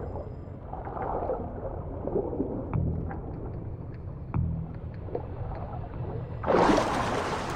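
Water gurgles and muffles as a swimmer moves underwater.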